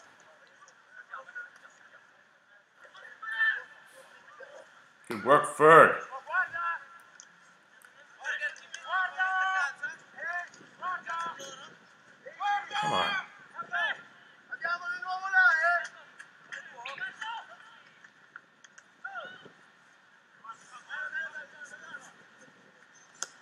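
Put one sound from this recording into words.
Rugby players shout calls to one another across an open field.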